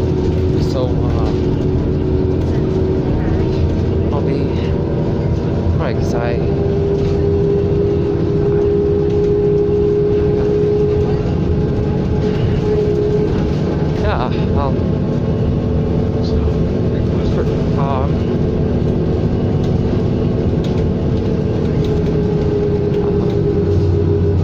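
A bus engine hums and drones steadily as the bus rolls along.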